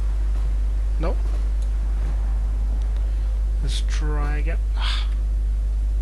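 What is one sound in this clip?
A young man speaks briefly and quietly into a close microphone.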